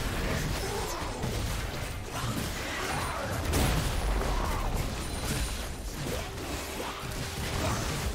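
Video game combat effects clash, whoosh and crackle in quick bursts.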